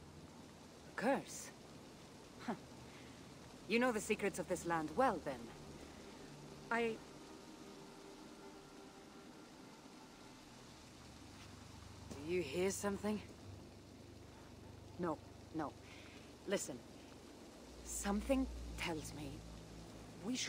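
A second woman answers with animation.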